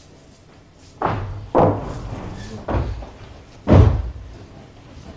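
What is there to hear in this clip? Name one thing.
Footsteps stomp loudly on a wooden stage.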